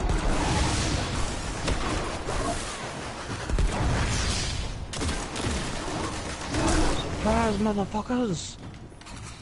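Energy gunfire crackles and bursts in quick succession.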